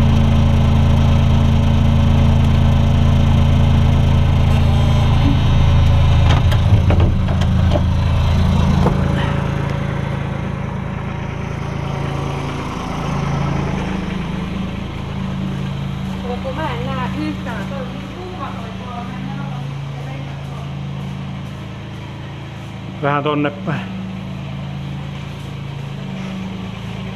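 A heavy engine rumbles loudly close by, then drops to a quieter, steady idle.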